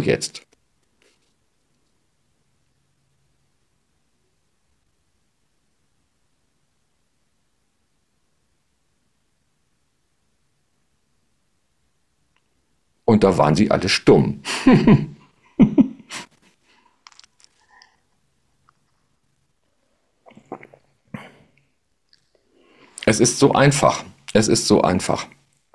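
A middle-aged man speaks calmly and close to a microphone, with long pauses.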